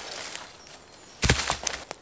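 A branch snaps and crackles underfoot.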